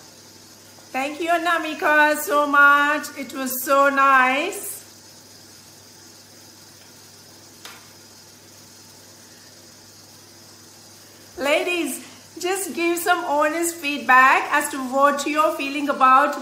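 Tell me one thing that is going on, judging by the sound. A middle-aged woman speaks with animation, close to a microphone.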